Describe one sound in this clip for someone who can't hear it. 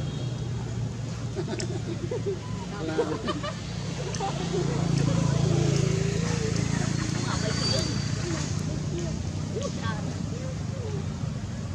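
Young monkeys squeak and chirp close by.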